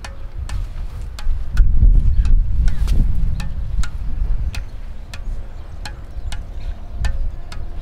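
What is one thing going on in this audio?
A ball taps repeatedly against a racket's strings in a steady rhythm.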